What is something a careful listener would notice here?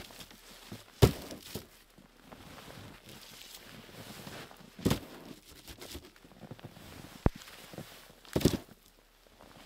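Wooden logs thud as they are stacked onto a pile.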